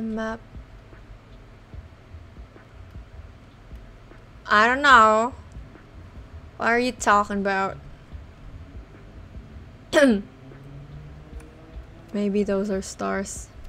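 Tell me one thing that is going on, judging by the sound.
A young woman speaks with animation, close to a microphone, in short bursts.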